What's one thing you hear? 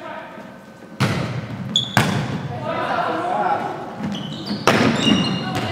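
A volleyball is struck with sharp smacks that echo in a large hall.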